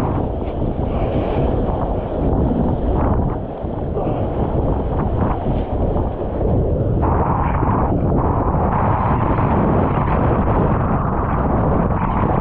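Strong wind roars loudly across the microphone outdoors.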